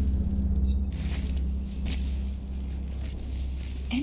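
A horse's hooves thud softly on the ground.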